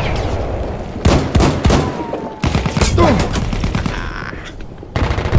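Gunshots bang sharply in quick bursts, echoing indoors.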